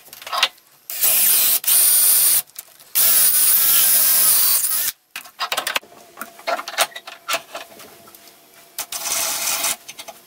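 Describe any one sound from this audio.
A power drill whirs loudly as it bores into wood.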